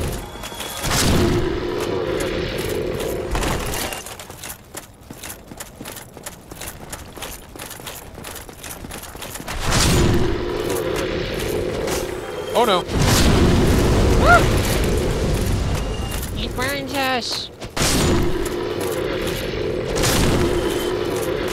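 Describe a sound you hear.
A sword slashes and strikes a creature.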